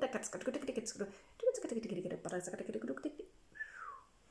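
A middle-aged woman speaks calmly close to the microphone.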